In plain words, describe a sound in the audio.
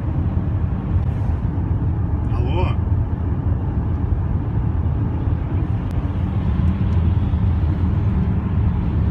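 A car engine hums and tyres rumble steadily on the road from inside the car.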